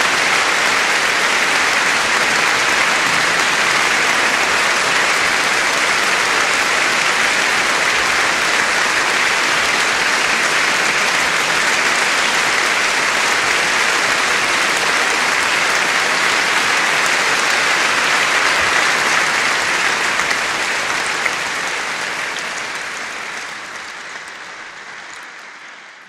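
A large audience applauds loudly in a big echoing hall, and the clapping slowly fades away.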